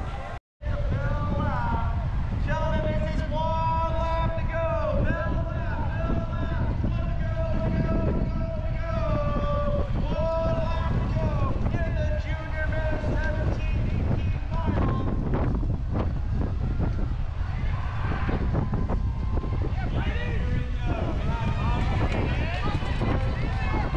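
Men and women talk and call out at a distance outdoors.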